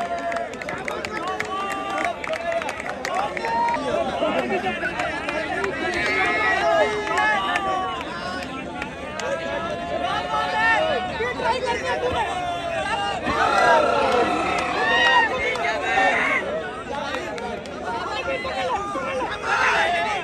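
A crowd of men shouts and cheers loudly throughout.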